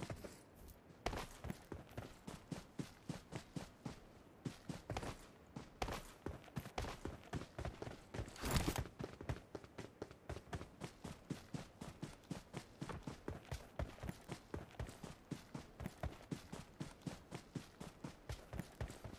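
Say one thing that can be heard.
Quick footsteps run over grass and pavement.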